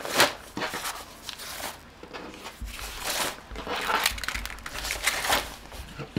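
A thin plastic bag rustles and crinkles close by.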